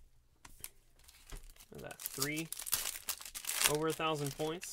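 A foil wrapper crinkles and crackles as it is handled.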